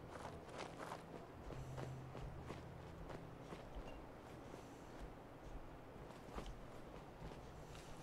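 Footsteps tread at a steady pace over rough ground.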